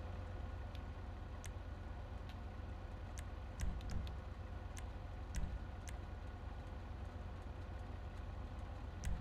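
Short electronic menu clicks tick now and then.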